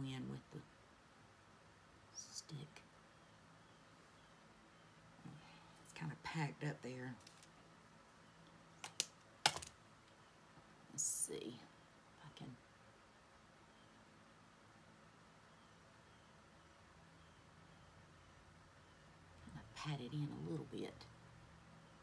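A woman speaks briefly and quietly, close by.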